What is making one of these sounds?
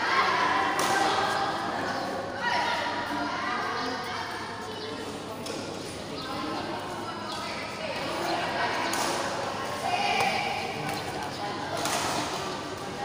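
Young women and men chatter and call out across an echoing hall.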